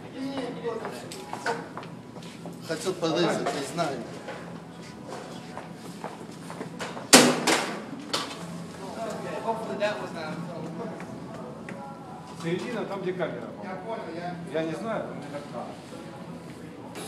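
A man talks nearby in a large echoing hall.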